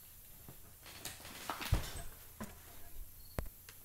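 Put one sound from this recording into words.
A sofa creaks and thumps as a man gets up from it.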